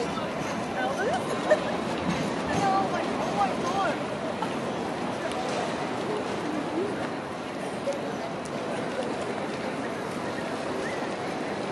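A tram glides slowly toward the listener.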